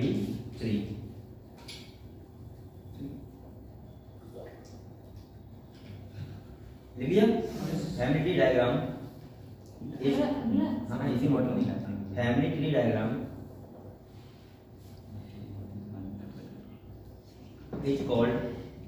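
A young man speaks calmly in a room with a slight echo.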